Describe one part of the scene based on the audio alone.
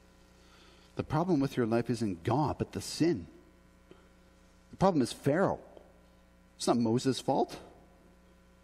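A man speaks calmly through a microphone in a room with a slight echo.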